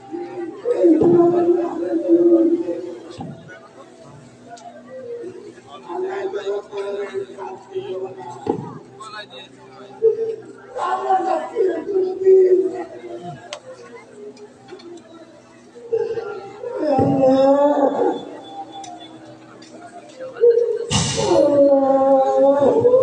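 A man declaims loudly and with emotion, heard from a distance in an open space.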